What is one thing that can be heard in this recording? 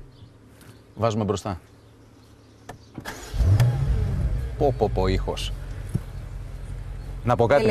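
A man speaks up close in a calm voice.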